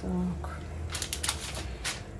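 Baking paper crinkles briefly as something is set down on it.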